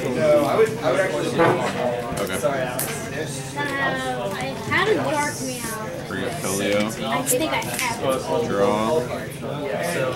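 Playing cards slide and tap softly on a table mat.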